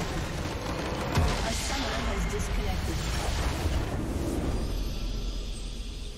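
A large game structure explodes with a deep rumble.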